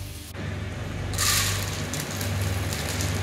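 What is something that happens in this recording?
Dry lentils patter onto a plate.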